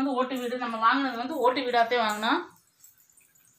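A young girl speaks animatedly close by.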